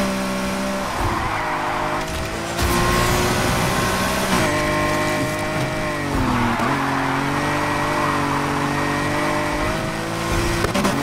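Tyres screech as a car drifts through bends.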